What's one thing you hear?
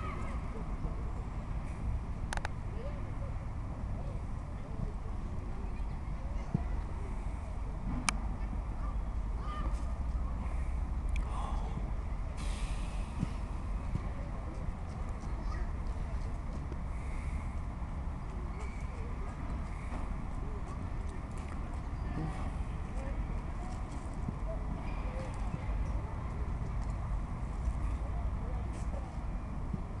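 Children shout and call out far off during a football game.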